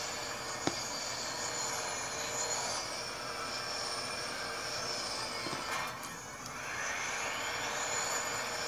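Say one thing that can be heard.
A quad bike engine whines and revs up and down steadily.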